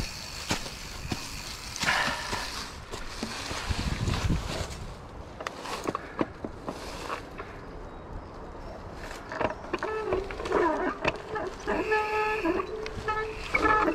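A mountain bike rattles and clatters over bumps.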